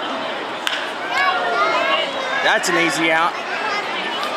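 A crowd of spectators cheers and whistles.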